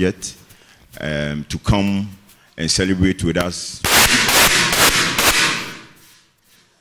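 A young man speaks with animation into a microphone, close by.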